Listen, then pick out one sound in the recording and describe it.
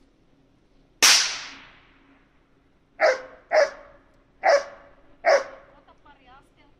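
A dog barks loudly several times nearby.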